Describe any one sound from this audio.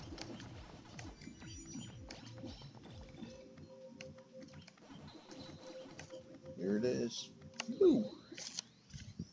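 Electronic game sound effects blip and chirp rapidly.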